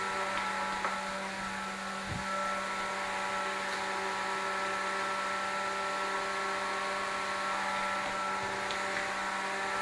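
Metal engine parts clink softly.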